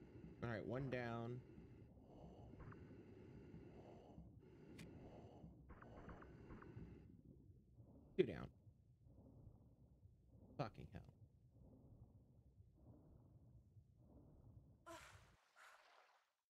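Water rumbles and bubbles in a muffled underwater drone.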